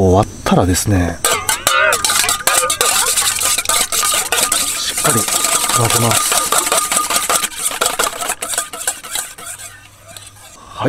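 A whisk clatters rapidly against a metal bowl.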